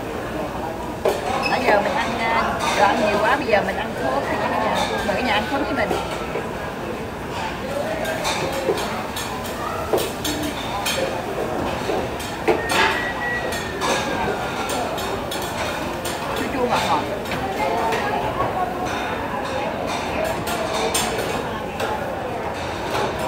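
A middle-aged woman talks and laughs close by.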